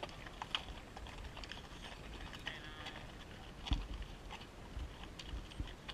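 Mule hooves clop on a dirt trail.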